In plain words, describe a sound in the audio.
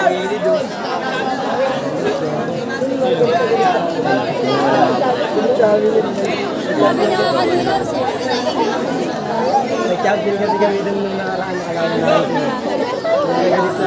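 A crowd of young people chatters and cheers outdoors.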